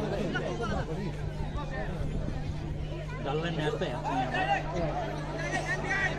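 A large crowd of spectators chatters and calls out nearby, outdoors.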